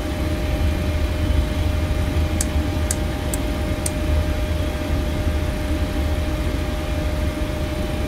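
The jet engines of an airliner rumble at low power, heard from the cockpit as it rolls along a runway.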